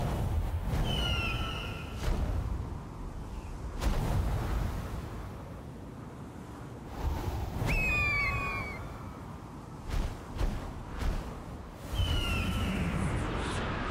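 An eagle gives sharp, high screeches.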